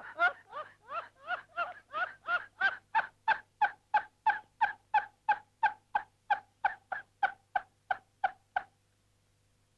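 An elderly man laughs loudly in rapid, rhythmic bursts, close by.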